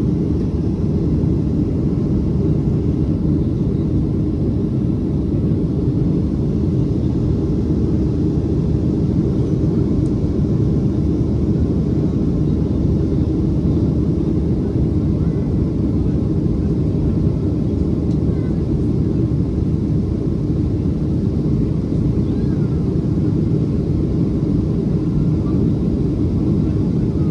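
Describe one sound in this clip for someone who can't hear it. A jet airliner's engines roar steadily in a low, constant drone.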